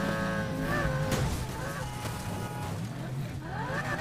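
A car crashes into another car with a loud metallic impact.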